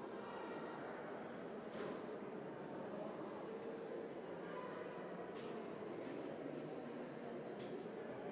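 A crowd of people murmurs in a large echoing hall.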